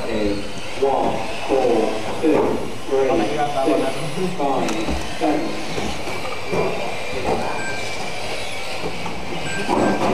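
Small electric model cars whine as they race around.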